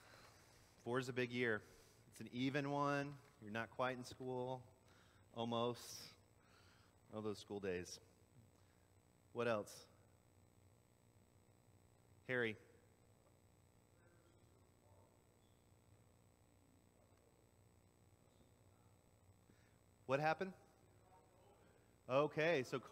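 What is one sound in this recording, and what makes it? A man speaks calmly through a microphone in a large echoing hall, with long pauses.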